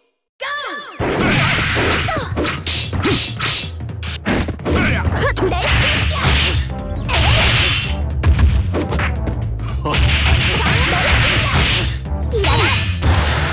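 Punches and kicks land with sharp smacks in a fight.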